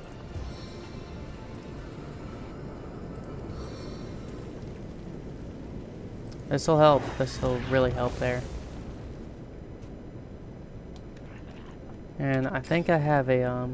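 Flames crackle softly.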